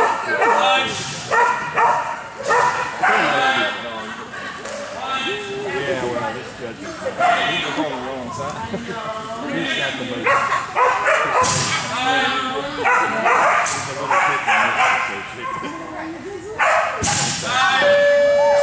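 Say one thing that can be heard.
A woman calls out commands to a running dog in a large echoing hall.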